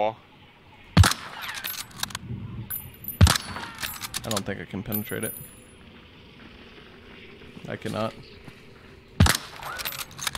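A pistol fires loud single shots that ring out.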